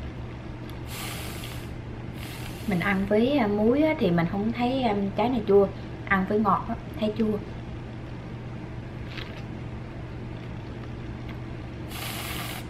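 An aerosol can of whipped cream hisses as it sprays.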